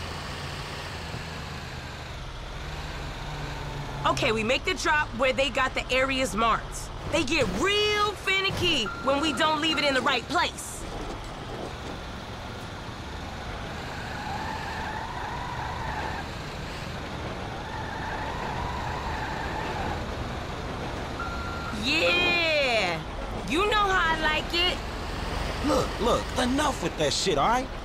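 A heavy truck engine rumbles as it drives.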